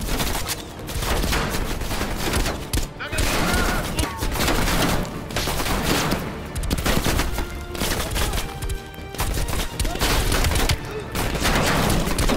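A scoped rifle fires single shots.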